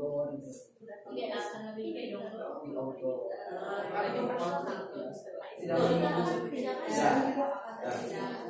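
Several adult women and men talk over one another nearby.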